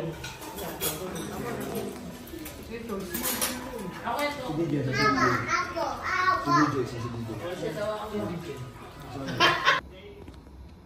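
Several women chat and laugh nearby.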